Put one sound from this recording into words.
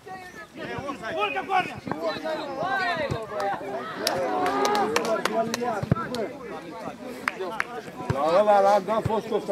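Men shout across an open field during a football match.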